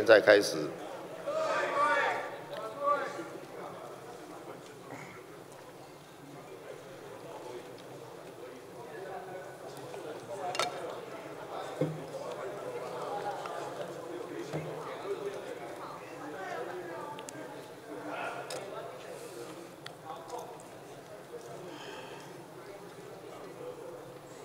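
Many people murmur and talk in a large echoing hall.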